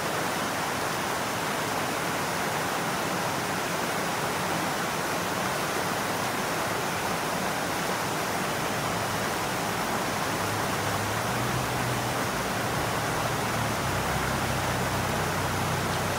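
A shallow stream rushes and gurgles over rocks.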